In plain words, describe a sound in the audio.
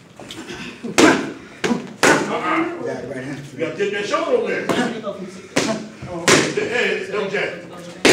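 Boxing gloves smack sharply against punch mitts.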